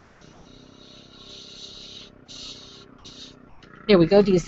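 An airbrush hisses softly in short bursts.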